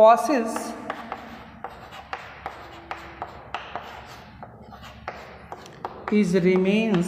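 Chalk taps and scrapes on a chalkboard.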